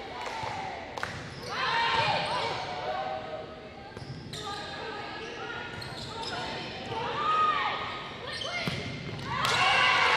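A volleyball is hit with a loud smack.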